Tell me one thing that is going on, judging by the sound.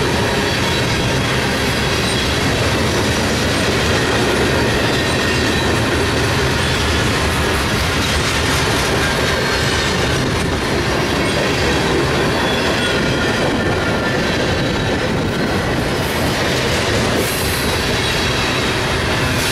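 A long freight train rumbles past close by, wheels clattering and squealing on the rails.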